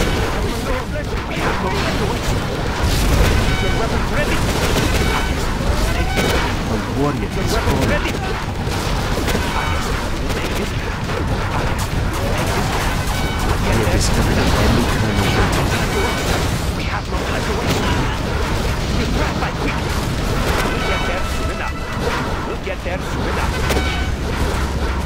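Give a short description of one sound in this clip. Explosions boom repeatedly in a game battle.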